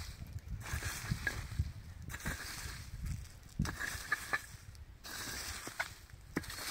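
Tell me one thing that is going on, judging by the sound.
A hoe scrapes and thuds into dry soil.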